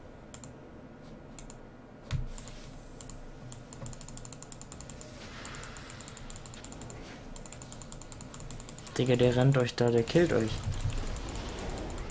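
Short game sound effects tick and chime repeatedly.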